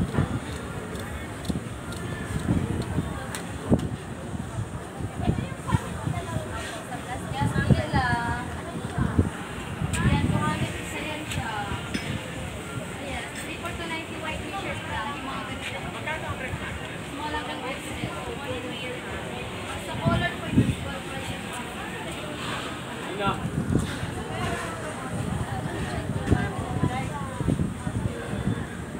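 Women talk casually nearby.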